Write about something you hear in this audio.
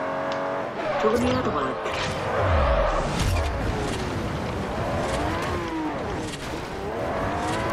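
Tyres skid and rumble over dirt.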